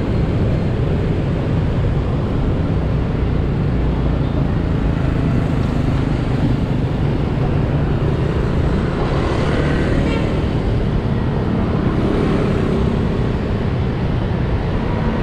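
Motorbikes and cars pass by on a busy street.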